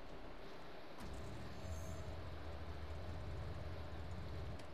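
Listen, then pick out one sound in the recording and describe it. A car engine starts and rumbles low and steady.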